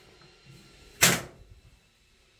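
A toilet lid bangs shut with a loud clack.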